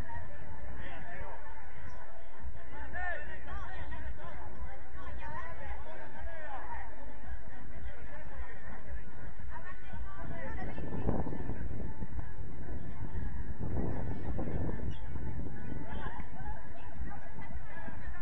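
Young men shout and call to each other across an open field outdoors.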